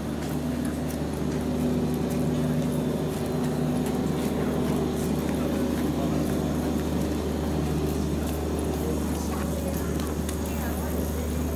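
Small wheels of a shopping cart roll over paving stones.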